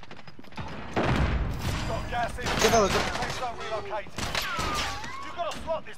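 .357 Magnum revolvers fire in quick shots.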